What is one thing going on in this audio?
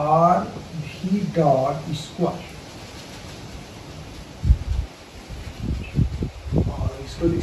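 A man speaks calmly and explains nearby.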